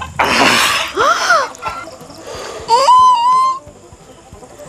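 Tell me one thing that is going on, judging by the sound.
A chicken squawks loudly close by.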